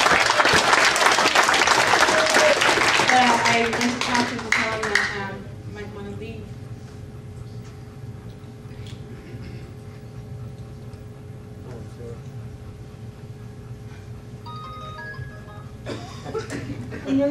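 A woman speaks into a microphone in a large room.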